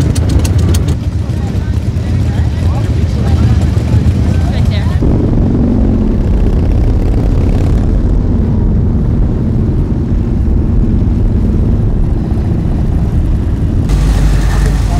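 Many motorcycle engines rumble loudly as a group rides past.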